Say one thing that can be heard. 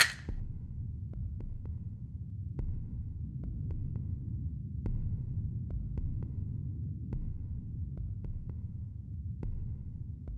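Small glass bottles tap down on a table.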